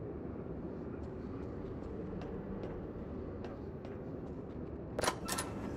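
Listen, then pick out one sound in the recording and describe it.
Footsteps clang on metal stairs.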